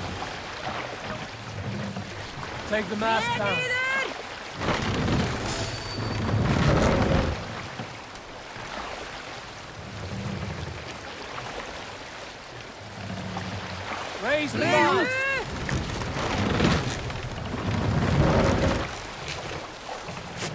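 Water rushes and splashes steadily against a moving wooden boat.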